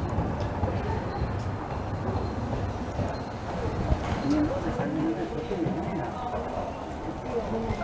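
A tram rumbles slowly along the tracks toward the listener.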